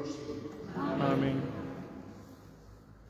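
A man sings briefly in a large echoing hall.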